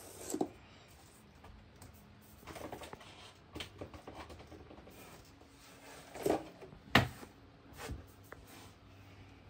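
Small objects knock and thump as they are handled nearby.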